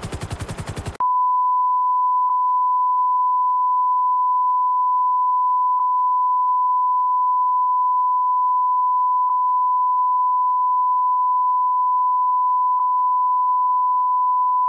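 A steady high beep of a test tone sounds without a break.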